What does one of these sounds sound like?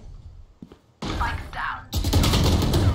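Rapid gunfire rattles in a short burst.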